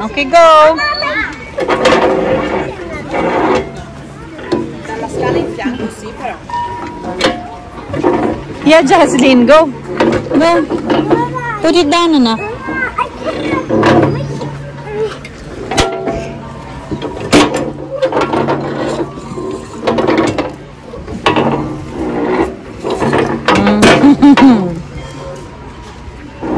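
Young children chatter and squeal close by.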